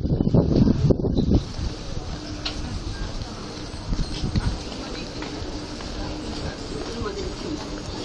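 Footsteps tap on a tiled floor as people walk past.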